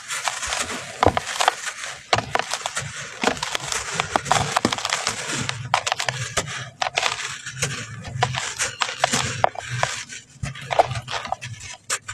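Clumps of packed sand crunch and break apart.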